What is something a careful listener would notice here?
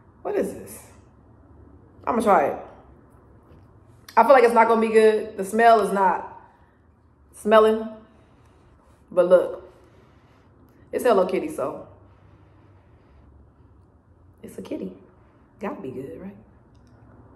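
A young woman talks close by in short bursts, with pauses.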